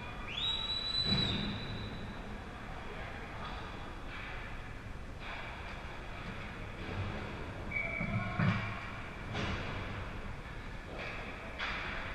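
Hockey sticks and pucks clack now and then.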